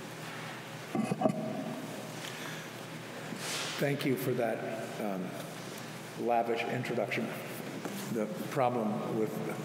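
An older man speaks slowly into a microphone.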